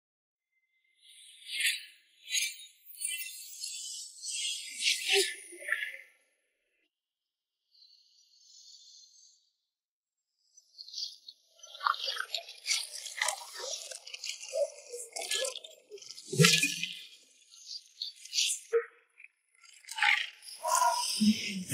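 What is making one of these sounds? Long silk sleeves whoosh sharply through the air.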